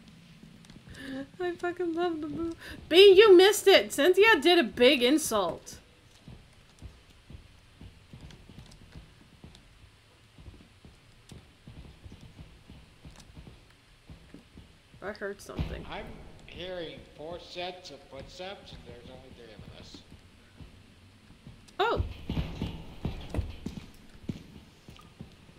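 A young woman talks with animation into a microphone, close up.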